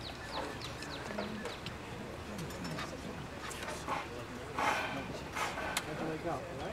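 Men and women chat quietly nearby outdoors.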